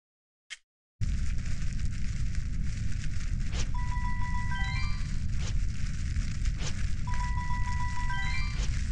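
Lively game music plays with a heavy beat.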